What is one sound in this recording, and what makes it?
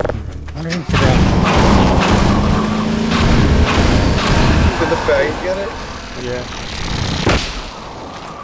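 A gun fires with loud blasts.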